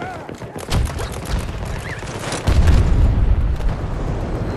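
Explosions boom heavily nearby.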